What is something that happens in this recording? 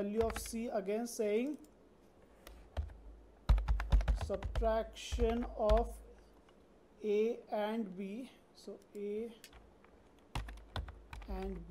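Computer keys click as someone types.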